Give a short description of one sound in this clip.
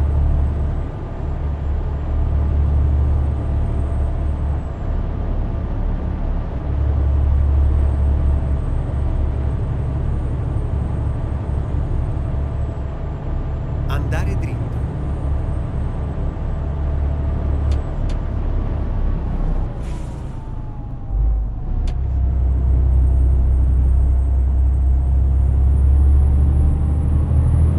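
A truck engine hums with a low, steady drone.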